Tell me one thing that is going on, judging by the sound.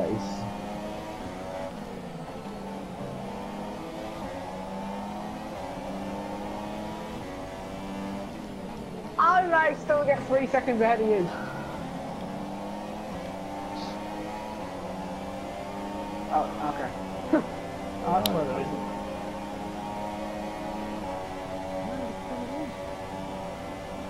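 A racing car engine whines loudly at high revs, rising and dropping in pitch as it shifts gears.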